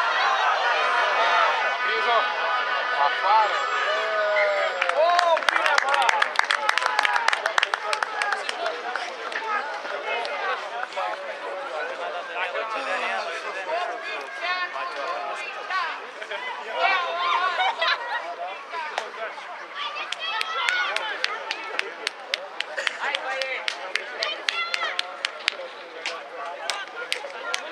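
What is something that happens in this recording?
Teenage boys shout and call to each other outdoors in the open.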